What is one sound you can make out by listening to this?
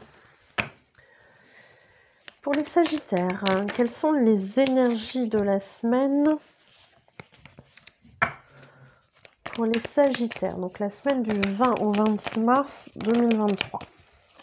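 Playing cards riffle and flick together as they are shuffled.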